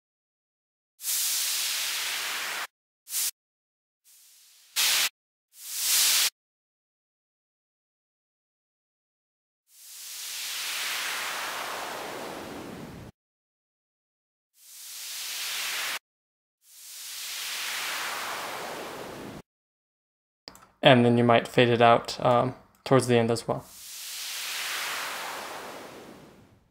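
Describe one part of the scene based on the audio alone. A synthesizer plays swelling bursts of filtered noise that sweep and fade.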